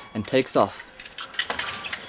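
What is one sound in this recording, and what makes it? Fencing blades clash and clatter.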